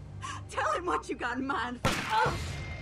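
A woman shouts angrily.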